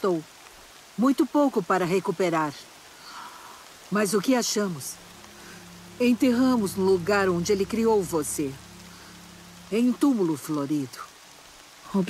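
An elderly woman speaks slowly and calmly, close by.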